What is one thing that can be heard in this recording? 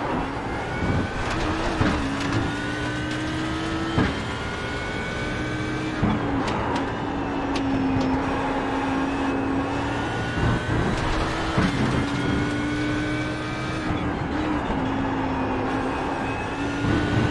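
Gear shifts crack sharply between revs.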